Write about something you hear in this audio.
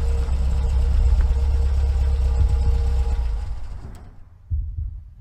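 A car engine hums steadily at idle, then fades.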